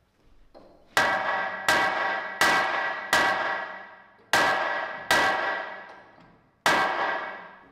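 A hammer strikes metal with ringing clangs.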